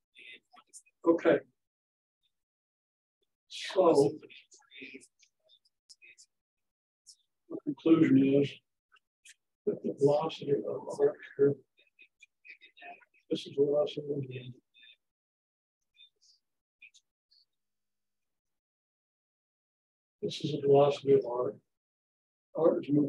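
An elderly man speaks in bursts, as if lecturing.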